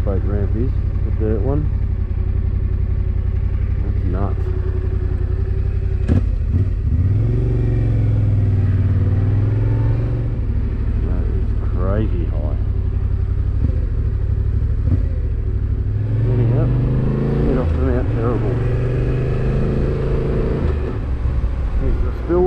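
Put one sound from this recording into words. A motorcycle engine rumbles steadily and rises and falls in pitch as the rider changes speed.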